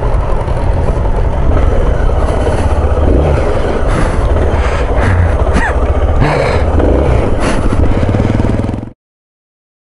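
A motorcycle engine rumbles as the bike rides over grass.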